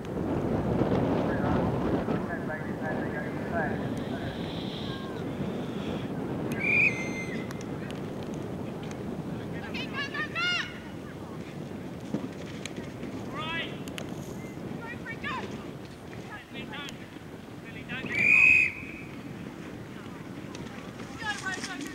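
Horses' hooves thud on turf at a gallop.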